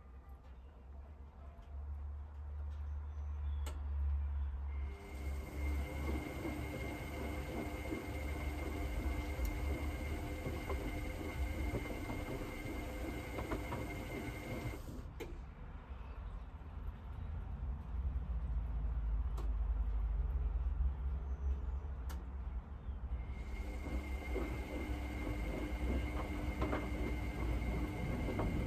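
Water and laundry slosh inside a washing machine drum.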